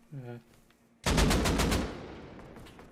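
A rifle fires a rapid burst of shots that echo away.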